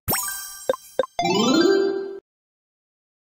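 A rising electronic jingle plays.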